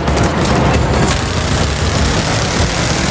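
A heavy machine gun fires rapidly.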